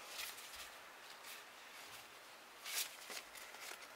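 Stiff trading cards rustle and flick as they are shuffled in hands.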